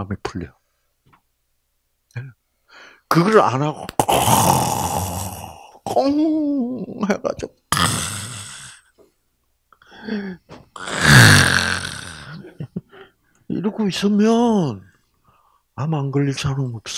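An elderly man speaks with animation through a microphone, with pauses.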